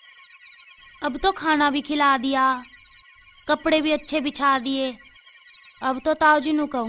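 A young woman sings.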